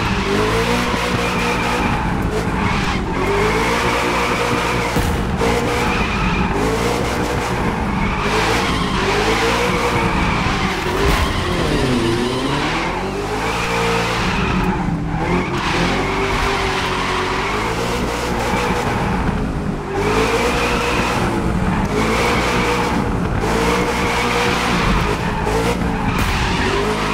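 A car engine roars, revving up and down over and over.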